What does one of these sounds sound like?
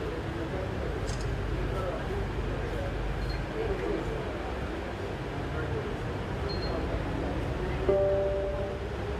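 A metro train rumbles steadily along the tracks.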